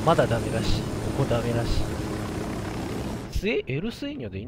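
A helicopter engine whirs loudly nearby.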